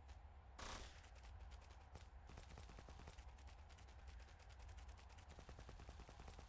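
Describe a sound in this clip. Footsteps tread steadily over grass and earth.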